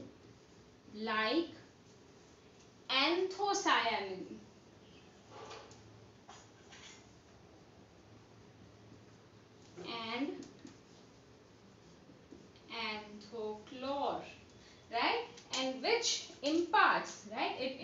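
A young woman speaks calmly and explains, close by.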